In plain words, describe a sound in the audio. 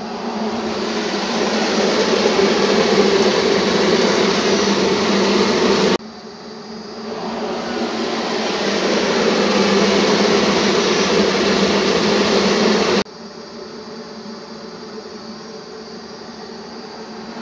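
An oven fan roars steadily.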